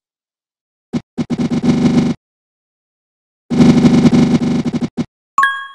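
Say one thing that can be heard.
Rapid electronic ticking rattles in bursts as a game score counts up.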